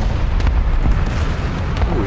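A distant explosion booms.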